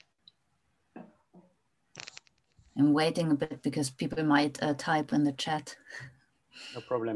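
A woman speaks calmly over an online call.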